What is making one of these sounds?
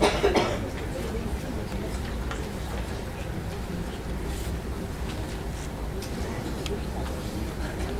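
A middle-aged man speaks into a microphone, heard through loudspeakers in a large echoing hall.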